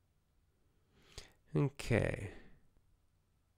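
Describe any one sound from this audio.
A middle-aged man speaks briefly and quietly into a close microphone.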